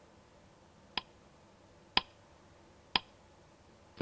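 A timer beeps once each second as it counts down.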